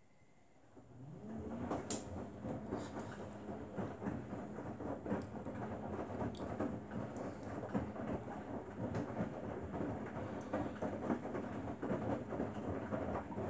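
Wet laundry tumbles and sloshes inside a front-loading washing machine drum.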